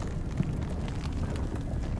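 Debris whirls and rustles in a rushing wind.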